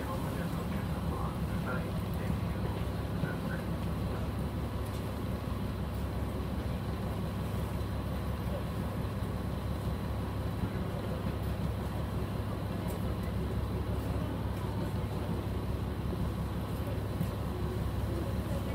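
Passengers' footsteps pass by on a platform.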